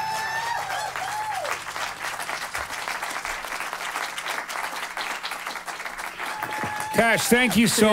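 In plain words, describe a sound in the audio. An audience claps and cheers in a room.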